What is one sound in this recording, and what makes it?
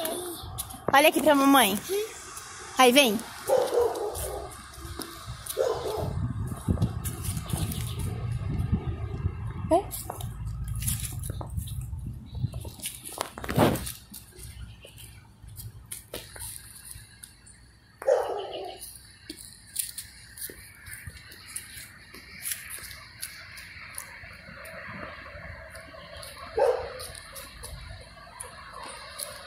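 A child's footsteps thud on rubber tyres.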